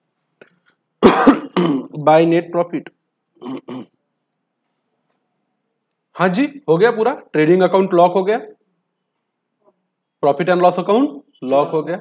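A man speaks calmly into a close microphone, explaining in bursts.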